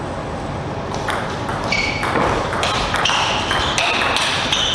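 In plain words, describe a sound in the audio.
A table tennis ball clicks quickly back and forth off paddles and the table.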